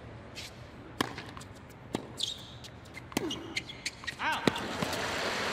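A tennis ball is struck sharply back and forth with rackets.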